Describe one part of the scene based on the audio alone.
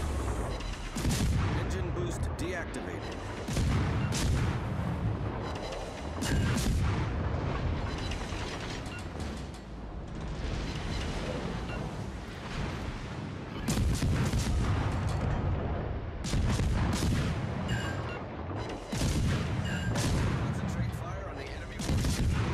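Naval guns fire in loud, booming salvos.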